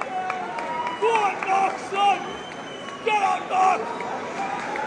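A crowd cheers and whistles in a large hall.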